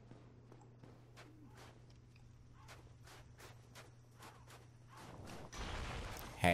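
Armoured footsteps clatter quickly on stone.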